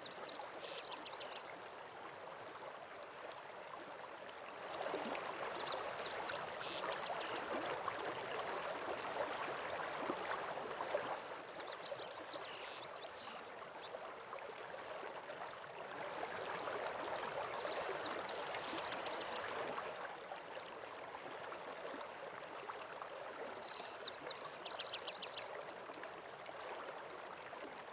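A waterfall rushes steadily in the distance.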